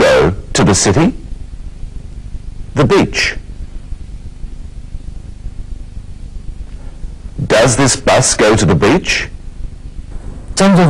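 A middle-aged man speaks clearly and slowly into a microphone, close up, with pauses between phrases.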